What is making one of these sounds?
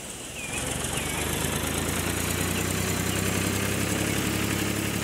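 A car engine hums steadily and rises in pitch as the car speeds up.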